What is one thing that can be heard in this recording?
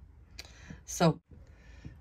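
A plastic pen is set down on a soft cloth with a light tap.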